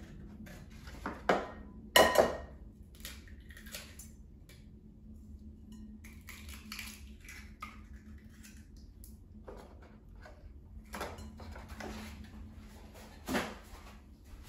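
A woman cracks eggs against a bowl.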